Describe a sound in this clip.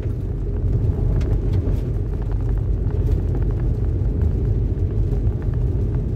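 Tyres crunch on wet gravel.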